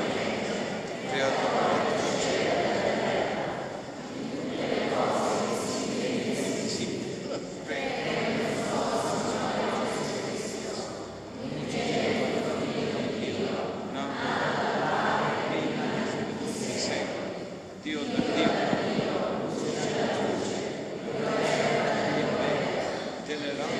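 A congregation sings together in a large echoing hall.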